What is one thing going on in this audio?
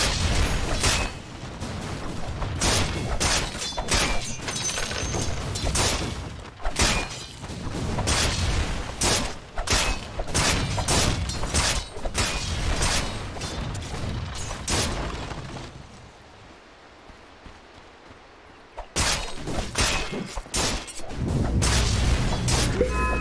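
Video game combat effects clash and burst in quick succession.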